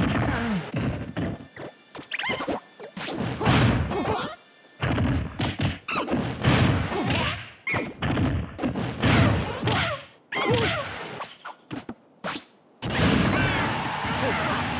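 Cartoonish fighting hits land with sharp smacks and whooshes.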